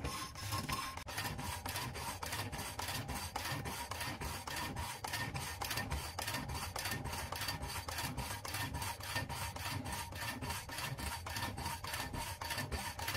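A wooden saw frame rattles and clacks back and forth in a fast, even rhythm.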